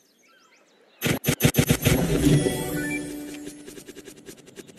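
A treasure chest bursts open with a bright magical chime.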